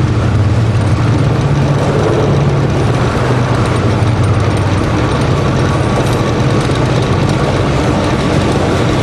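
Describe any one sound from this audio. A long freight train rumbles steadily past on the rails.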